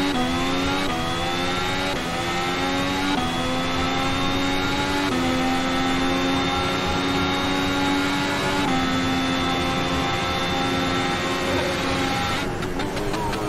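A racing car engine roars at high revs, rising through gear shifts.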